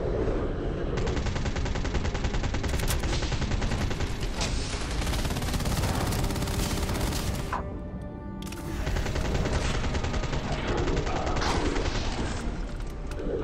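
A rapid burst of gunfire rattles loudly and repeatedly.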